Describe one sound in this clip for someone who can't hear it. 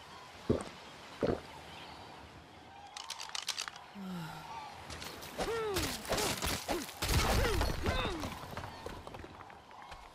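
Footsteps crunch on sand and gravel.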